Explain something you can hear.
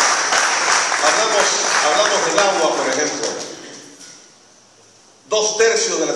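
An older man speaks through a microphone and loudspeaker in an echoing hall.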